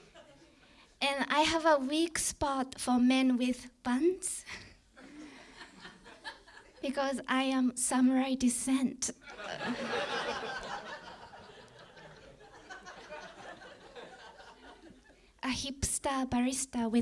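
A young woman speaks with animation into a microphone.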